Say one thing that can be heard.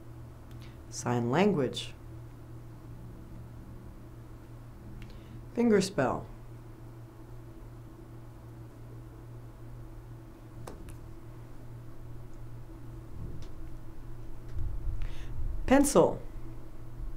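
A woman says short single words calmly, close to a microphone.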